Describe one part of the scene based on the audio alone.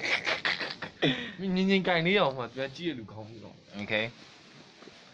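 A young man talks playfully in a high, sing-song voice close to a phone's microphone.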